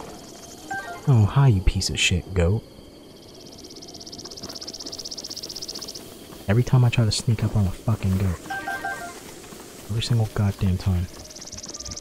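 A short bright chime rings as an item is picked up.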